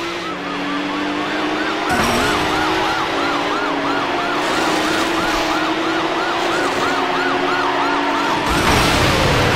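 Tyres squeal in a long wavering screech through bends.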